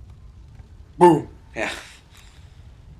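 A small compact clicks and snaps open.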